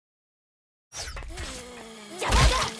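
Game combat sounds clash and whoosh loudly.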